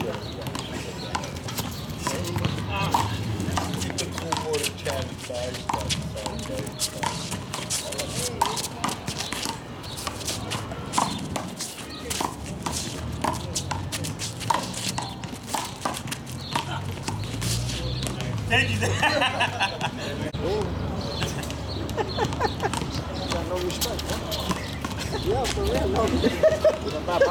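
Men call out to each other outdoors.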